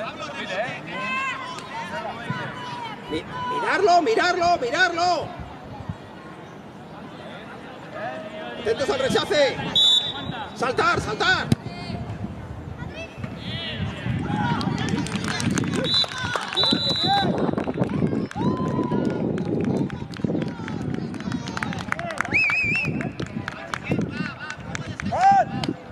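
Children shout and call out across an open sports field.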